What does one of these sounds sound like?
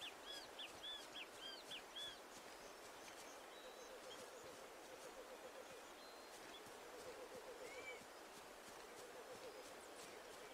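Footsteps run quickly over grass and leaves.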